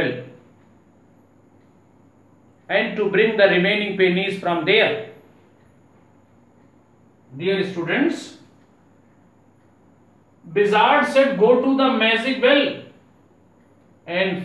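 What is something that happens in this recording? A man speaks calmly and clearly, close by, in short bursts with pauses.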